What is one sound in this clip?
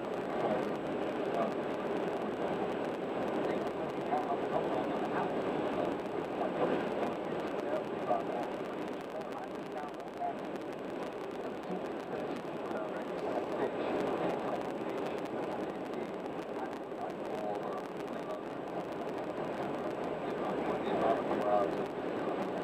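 Tyres roar steadily on a highway as a car drives along.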